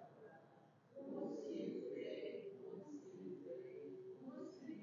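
A man speaks calmly and solemnly through a microphone in an echoing room.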